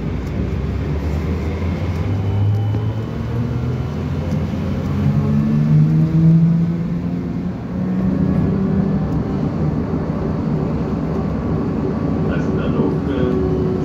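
An electric motor whines from inside a moving vehicle, its pitch rising and falling.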